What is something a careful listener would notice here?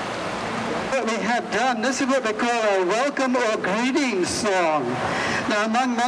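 A man speaks loudly nearby, outdoors.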